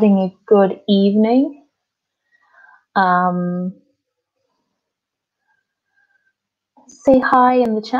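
A woman speaks calmly through an online call, with pauses.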